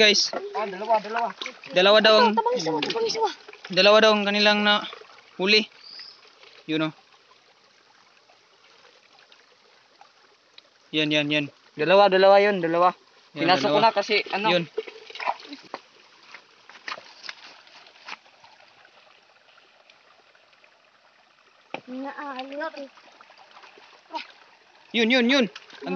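Shallow water gurgles over rocks in a stream.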